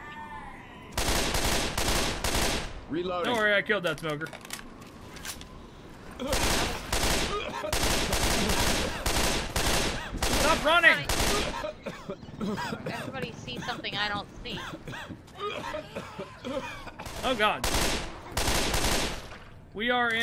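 A gun fires in rapid bursts of shots.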